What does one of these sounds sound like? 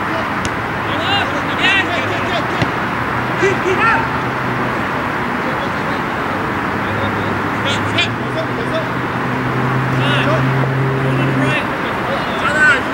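Men shout to each other across an open field.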